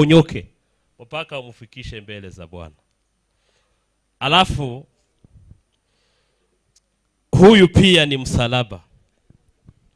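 A man speaks into a microphone with pauses, his voice carried over a loudspeaker.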